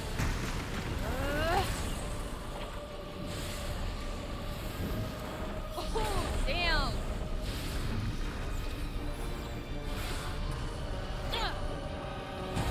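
A large creature shrieks with rising and falling cries.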